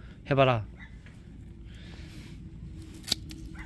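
A gloved hand brushes over loose soil.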